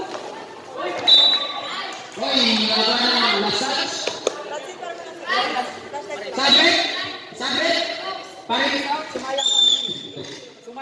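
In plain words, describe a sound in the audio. Sneakers squeak on a hard court.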